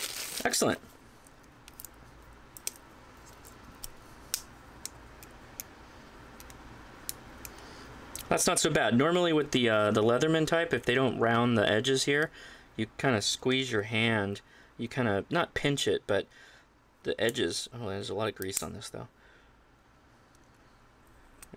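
A metal multi-tool clicks as its handles fold open and shut.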